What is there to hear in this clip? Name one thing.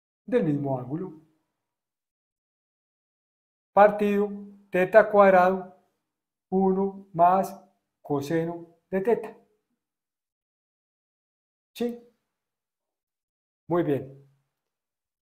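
A man speaks calmly and clearly, close up, in short phrases.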